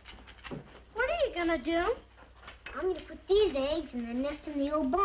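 A young boy talks with animation.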